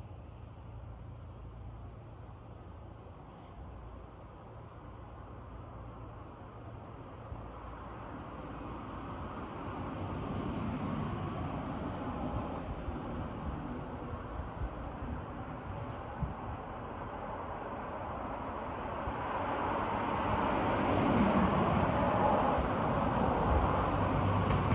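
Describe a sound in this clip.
Wind rustles through tree leaves outdoors, slowly growing louder.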